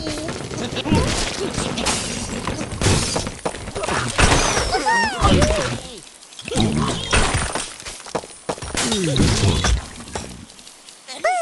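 Wooden and stone blocks crash and tumble as a tower collapses.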